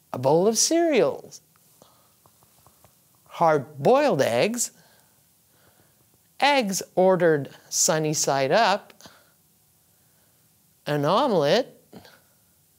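An older woman speaks slowly and clearly into a close microphone, pausing between phrases.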